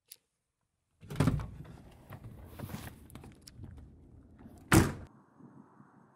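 Hands fumble with gear close by, with knocks and rustles.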